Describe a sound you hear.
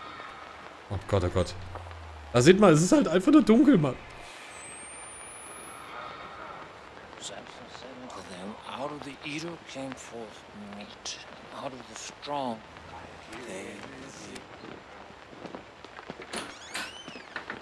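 A man talks close to a microphone, sometimes loudly and excitedly.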